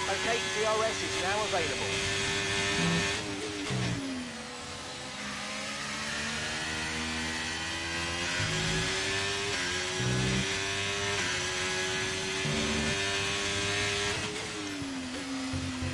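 A racing car engine whines at high revs, dropping in pitch with each downshift and rising again as it speeds up.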